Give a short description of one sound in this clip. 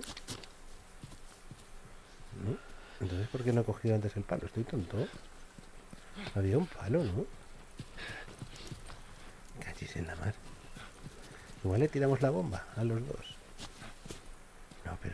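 Footsteps tread softly on grass and stone.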